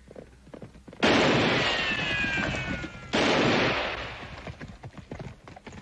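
Two loud gunshots ring out and echo away.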